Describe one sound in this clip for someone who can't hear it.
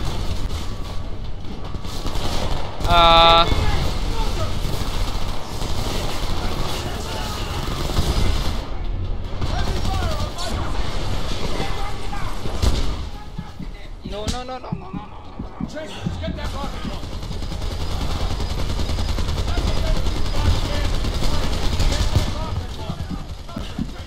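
A machine gun fires in rapid bursts close by.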